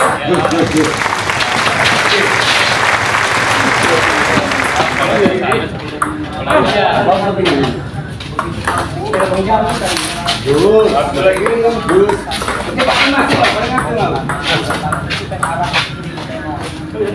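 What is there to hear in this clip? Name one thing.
A ping pong ball clicks back and forth off paddles and a table.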